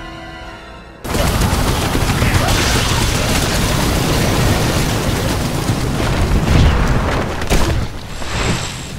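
A fire roars and crackles loudly.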